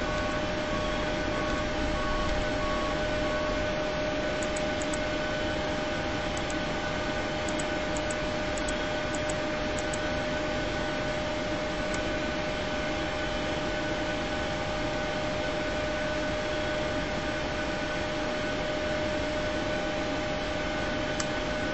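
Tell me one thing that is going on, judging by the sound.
Aircraft cooling fans whir with a steady electrical hum.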